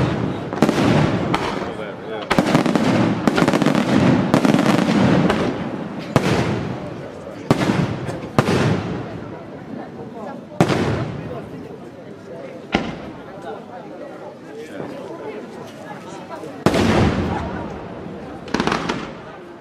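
Fireworks crackle and fizzle in the sky.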